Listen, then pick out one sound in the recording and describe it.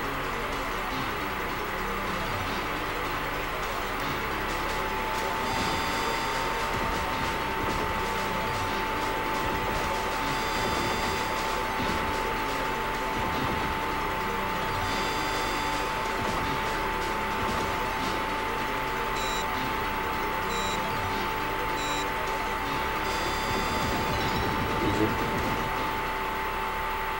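Electronic game music plays steadily throughout.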